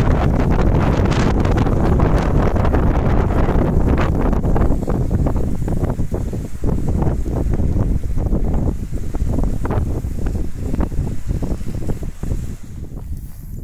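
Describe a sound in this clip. Strong wind blows and buffets against the microphone outdoors.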